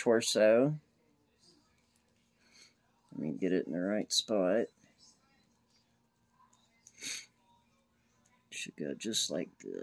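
Small plastic toy parts click softly as fingers handle them.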